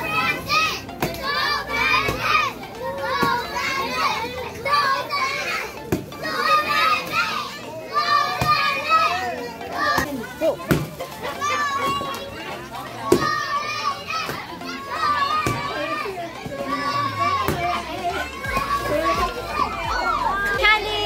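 A stick thwacks a hanging piñata.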